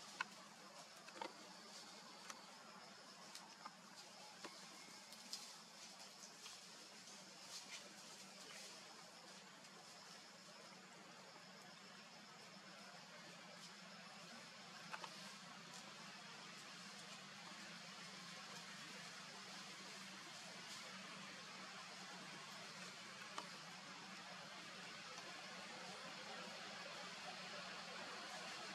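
A monkey rustles through the grass.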